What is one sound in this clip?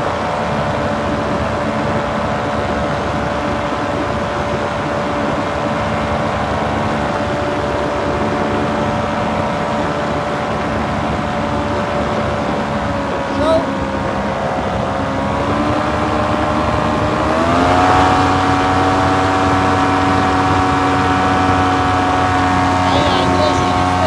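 Wind rushes steadily past the microphone.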